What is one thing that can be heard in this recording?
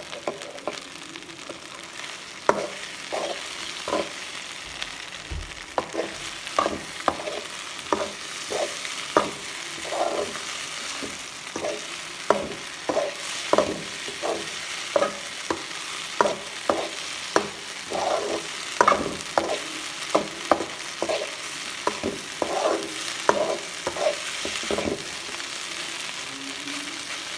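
Food sizzles faintly in a hot pan.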